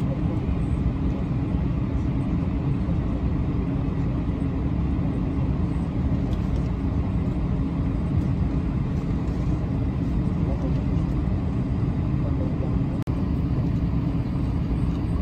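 A jet airliner's engines rumble steadily, heard from inside the cabin as the plane taxis.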